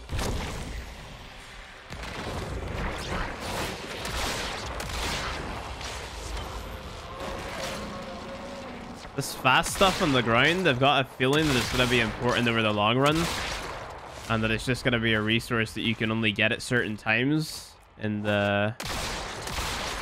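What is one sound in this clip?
Weapons blast and energy whooshes in a video game battle.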